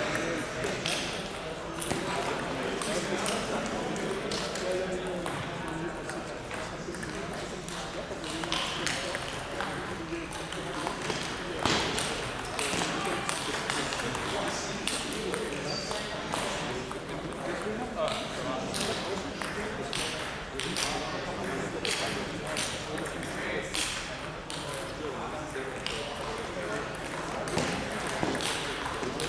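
A table tennis ball clicks rapidly off paddles and the table in rallies.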